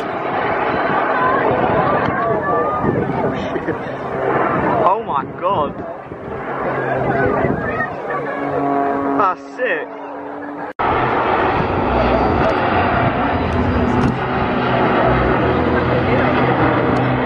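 A propeller aerobatic biplane's engine drones and changes pitch as the plane performs aerobatics overhead.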